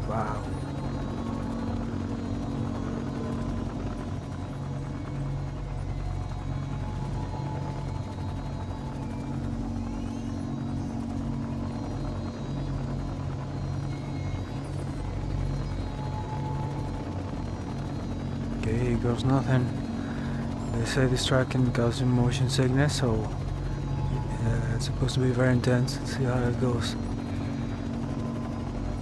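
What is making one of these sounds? A hovering racing craft's engine hums steadily at idle.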